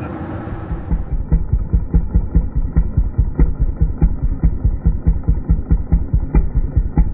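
A gas engine pounds in a fast, steady rhythm.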